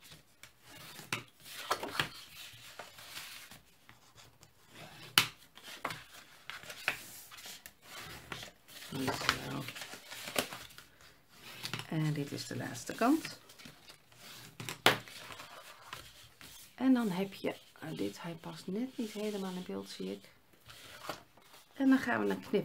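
Stiff paper rustles and crackles as it is folded.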